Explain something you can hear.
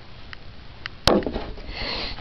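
A plastic bottle is set down on a glass surface with a knock.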